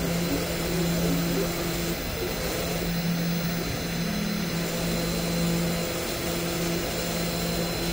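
A router bit drills into wood with a rough grinding noise.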